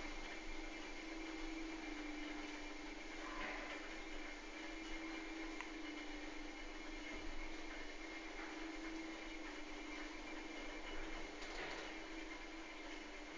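An elevator hums steadily as it descends.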